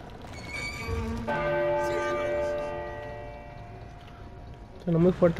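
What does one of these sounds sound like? A large bell rings loudly and its tone slowly fades.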